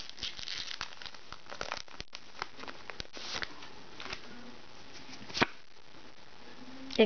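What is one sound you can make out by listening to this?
Trading cards rustle and tap as they are handled.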